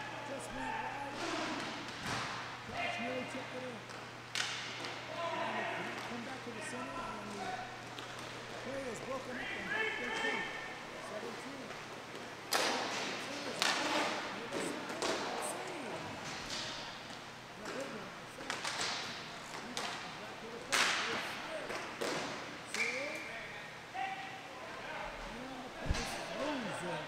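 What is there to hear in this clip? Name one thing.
Hockey sticks clack against a ball and the boards.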